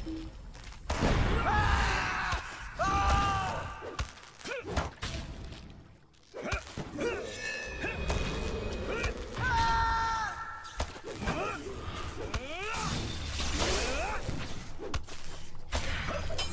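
Blades strike with sharp clangs.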